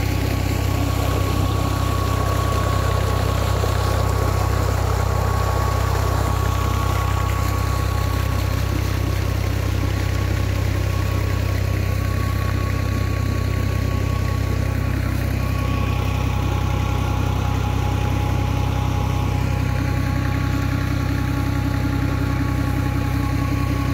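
A diesel engine drones steadily nearby.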